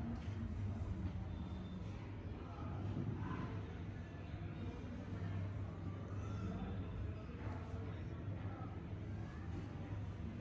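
Fingers rub and ruffle through damp hair on the scalp.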